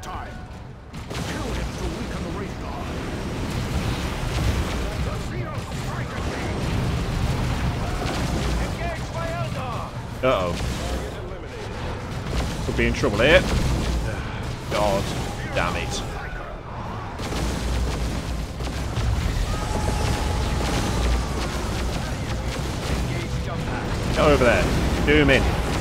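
Guns fire and energy blasts crackle in a battle.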